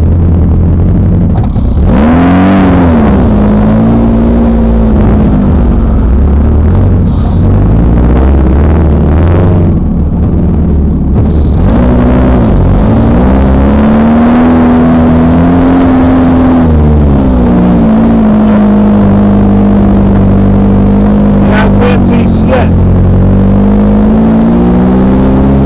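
A diesel tractor engine runs loudly close by, revving up and down.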